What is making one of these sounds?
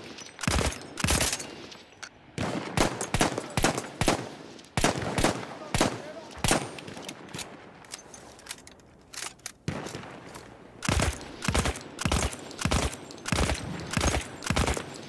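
A heavy machine gun fires in short, loud bursts.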